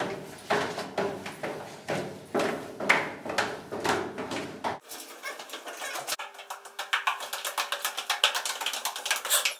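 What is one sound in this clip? Footsteps thud quickly up metal stairs.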